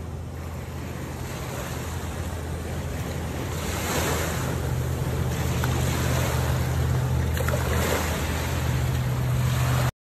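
A boat engine drones steadily as a motorboat speeds past.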